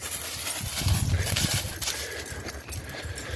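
A dog runs through dry leaves, which rustle and crunch.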